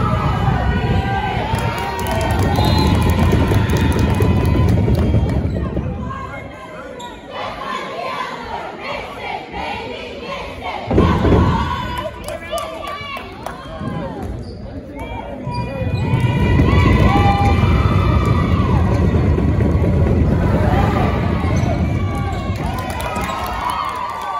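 A crowd cheers and shouts in an echoing gym.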